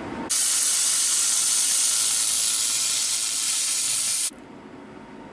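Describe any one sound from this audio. A welding torch hisses loudly and steadily.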